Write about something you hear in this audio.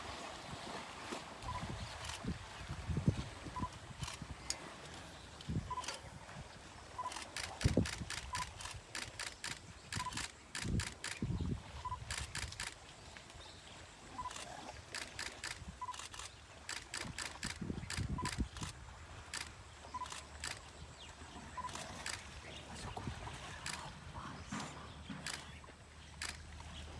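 Elephants splash and slosh through shallow water.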